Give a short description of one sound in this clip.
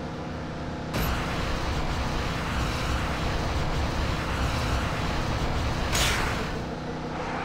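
A car engine roars loudly for a few seconds.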